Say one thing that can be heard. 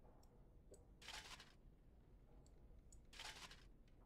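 A game sound effect of clinking armour plays as armour is equipped.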